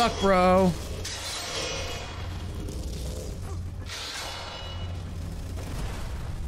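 A magic spell whooshes and crackles nearby.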